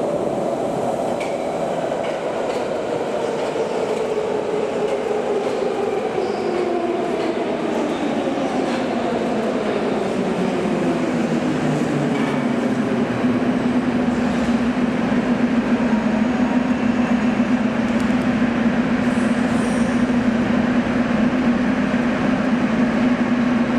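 A metro train rumbles into an echoing underground station.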